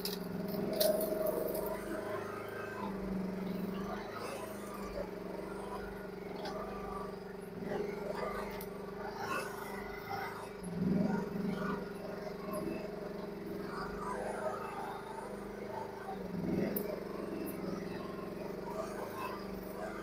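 A small diesel engine hums steadily nearby.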